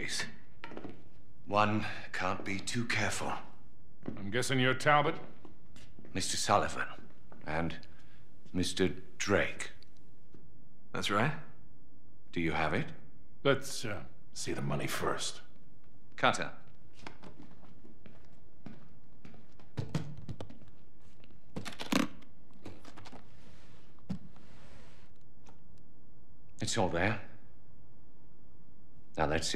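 A man speaks calmly and in a low voice, close by.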